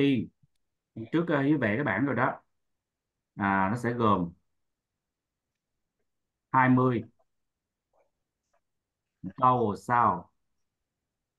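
A woman speaks calmly in short phrases, heard through an online call.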